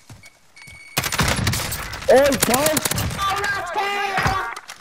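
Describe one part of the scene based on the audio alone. Gunshots crack in a rapid burst.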